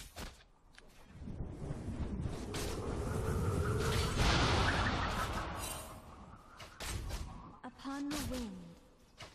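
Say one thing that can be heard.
Spell effects whoosh and crackle during a fast fight.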